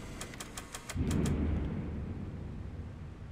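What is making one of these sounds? A soda can drops out of a vending machine with a heavy thud.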